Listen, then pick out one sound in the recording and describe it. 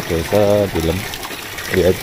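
Water pours from a pipe and splashes below.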